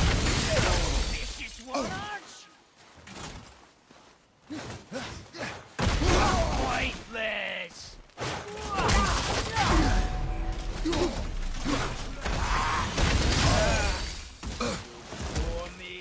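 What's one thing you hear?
Heavy blows strike and thud during a fight.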